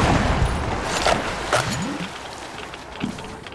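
A rifle fires sharp shots.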